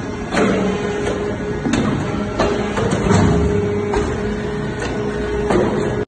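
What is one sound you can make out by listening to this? Metal clanks sharply now and then.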